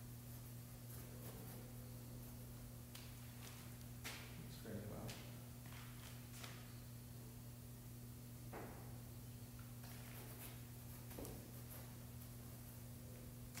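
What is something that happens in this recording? A paintbrush scrapes softly across canvas in short strokes.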